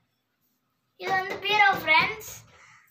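A young girl speaks close by with animation.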